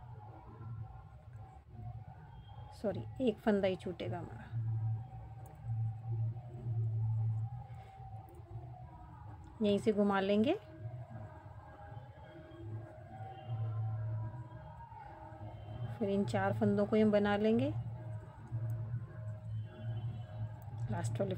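A crochet hook softly pulls through yarn.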